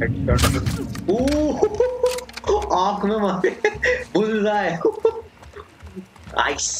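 A young man talks and laughs with animation, close to a microphone.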